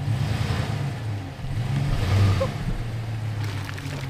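Tyres splash through a muddy puddle.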